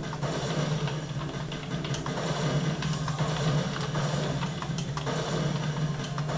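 Keys clatter on a keyboard, tapped quickly.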